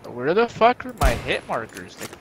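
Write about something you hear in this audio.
A sniper rifle fires a single shot.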